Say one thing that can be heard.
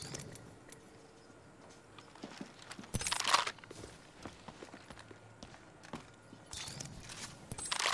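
Short menu clicks sound in a video game.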